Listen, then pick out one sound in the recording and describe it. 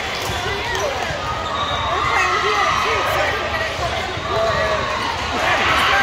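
Many voices chatter and call out throughout a large echoing hall.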